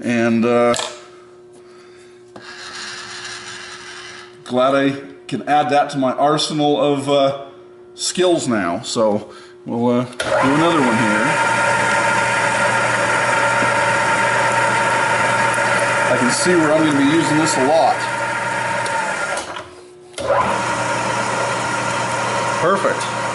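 A drill press motor whirs steadily.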